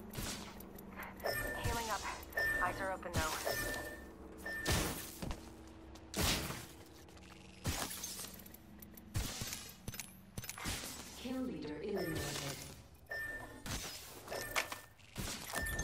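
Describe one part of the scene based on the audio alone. Short electronic beeps and clicks sound as items are picked up.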